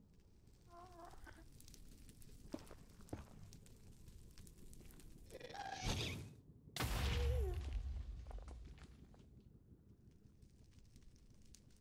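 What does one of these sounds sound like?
Blocks crunch and break as they are dug out.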